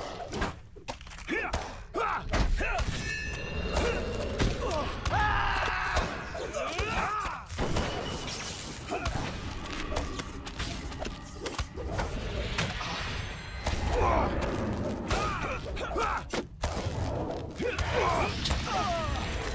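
Weapons strike repeatedly in a fight.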